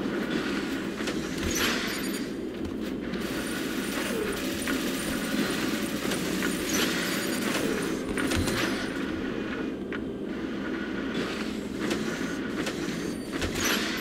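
Heavy mechanical footsteps thud and clank at a steady pace.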